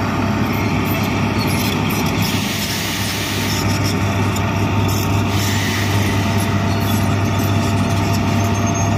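A diesel tracked excavator engine rumbles while digging.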